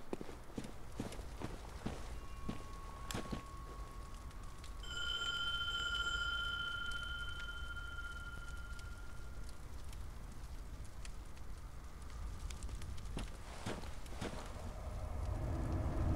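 Fires crackle and burn steadily.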